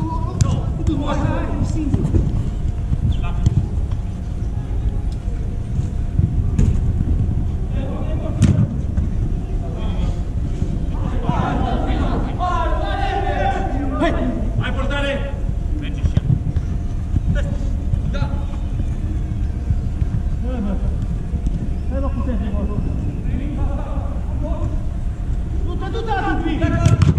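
Men shout to each other across a large echoing hall.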